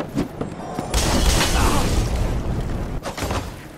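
A fireball bursts with a loud roaring blast.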